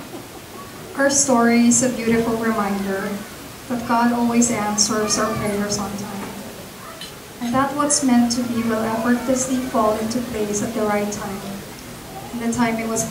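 A young woman speaks warmly into a microphone over loudspeakers.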